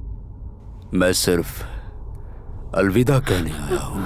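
A man speaks quietly in a low voice.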